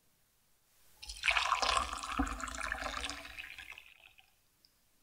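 Water pours and splashes.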